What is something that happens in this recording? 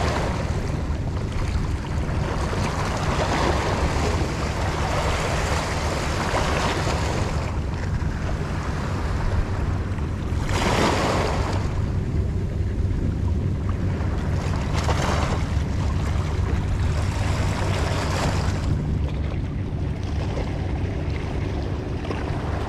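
Waves wash and splash against rocks close by.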